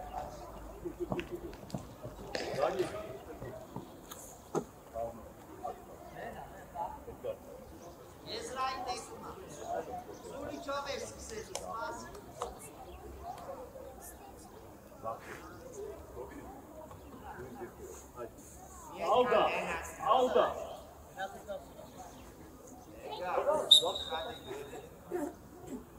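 A man talks to children outdoors, calling out instructions.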